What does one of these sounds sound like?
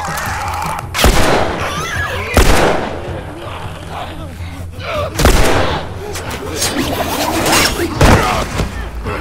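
A pistol fires sharply several times.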